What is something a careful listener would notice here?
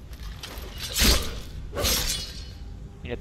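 A sword strikes a skeletal creature with a sharp clang.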